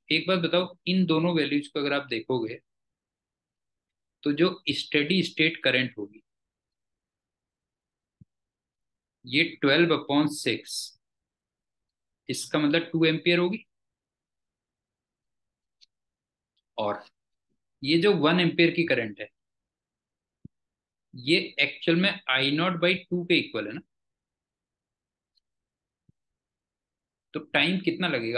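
A man explains calmly through a microphone, in short bursts with pauses.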